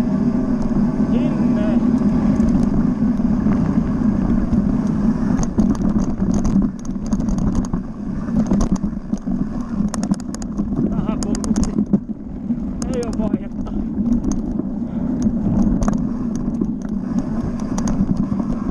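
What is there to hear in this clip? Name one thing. Gravel and stones crackle and tick under the tyres on a dirt track.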